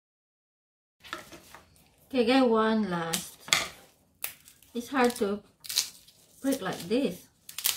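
Dry garlic skins crackle and rustle as they are peeled.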